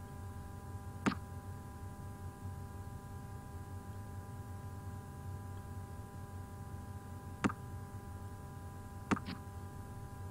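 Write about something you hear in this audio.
An online poker game plays a short card-dealing click.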